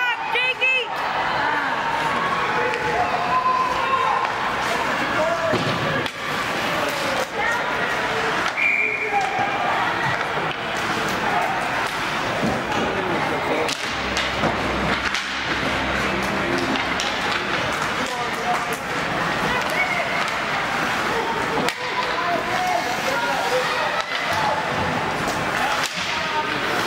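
Skate blades scrape across the ice.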